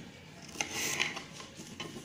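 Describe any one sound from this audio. A knife chops onion on a cutting board.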